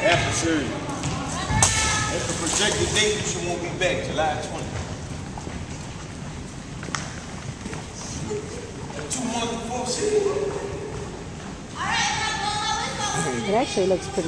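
Sneakers squeak on a wooden floor.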